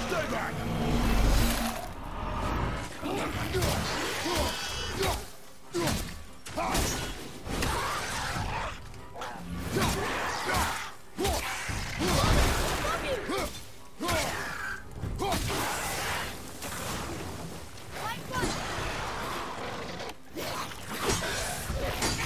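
Heavy blows and thuds of a fight land again and again.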